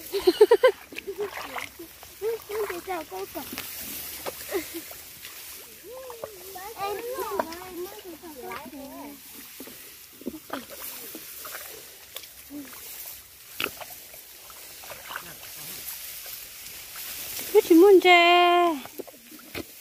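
A woman talks nearby with animation.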